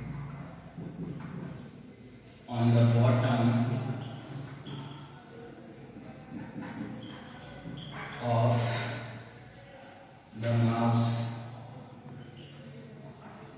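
A marker squeaks and scratches on a whiteboard.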